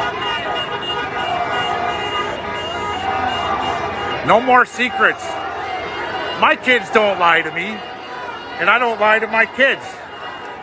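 A large crowd murmurs and talks outdoors.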